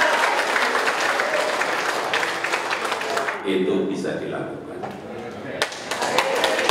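A middle-aged man speaks calmly into a microphone in a large echoing hall.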